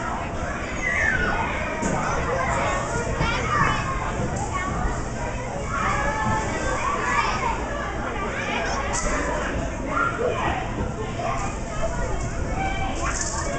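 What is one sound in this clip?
Young children shout and squeal throughout, in a large echoing hall.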